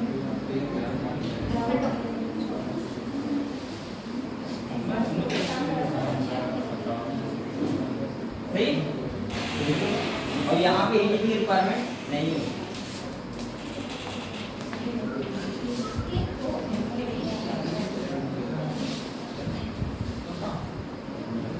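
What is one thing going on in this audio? A young man speaks calmly and steadily nearby, as if explaining.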